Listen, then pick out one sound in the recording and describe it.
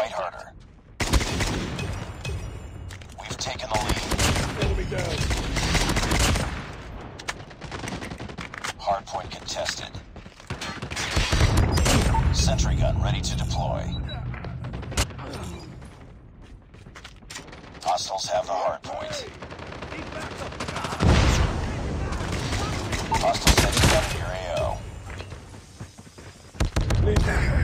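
Gunfire bursts rapidly and loudly.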